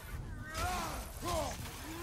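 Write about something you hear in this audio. An axe strikes a creature with a heavy thud.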